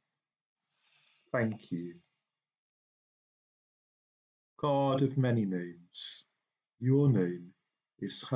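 A middle-aged man speaks calmly and close up, in short bursts with pauses.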